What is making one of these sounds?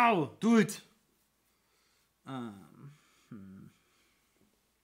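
A man talks with animation into a microphone, up close.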